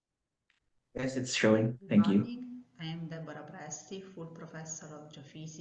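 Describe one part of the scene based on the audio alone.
A woman speaks calmly over an online call.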